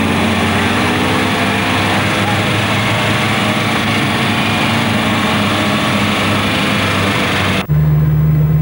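A car engine hums steadily close by.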